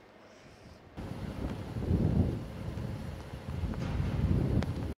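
Wind blows across an open outdoor space.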